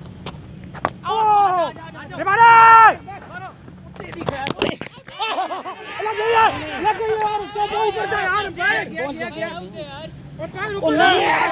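Young men shout and call out loudly outdoors.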